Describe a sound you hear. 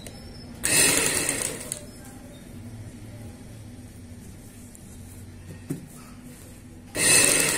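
A sewing machine runs in quick bursts, whirring and clattering.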